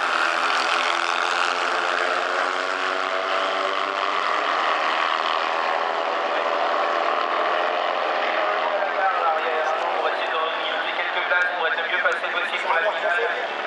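Several racing engines roar and whine at high revs, slowly fading into the distance.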